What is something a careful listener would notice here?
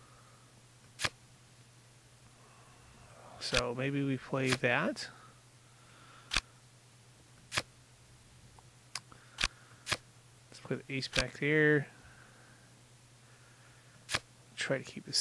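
Short sharp clicks sound as playing cards snap into place.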